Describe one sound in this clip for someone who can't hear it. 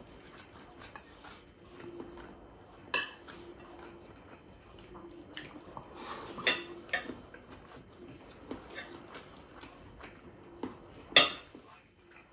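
A metal spoon and fork clink against a plate.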